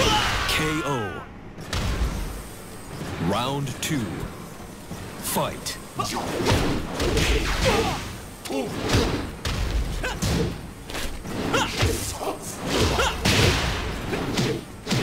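Punches and kicks land with sharp impact thuds.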